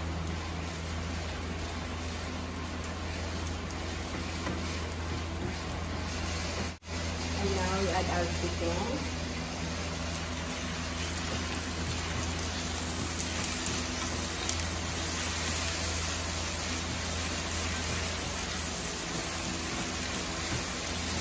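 A wooden spatula scrapes and stirs against a pan.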